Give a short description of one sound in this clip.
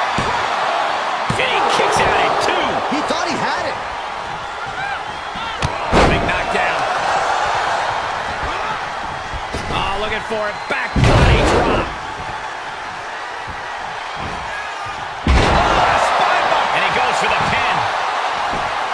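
A crowd cheers and roars loudly throughout.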